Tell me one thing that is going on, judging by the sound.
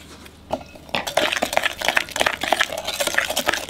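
A spoon scrapes around a glass bowl while stirring.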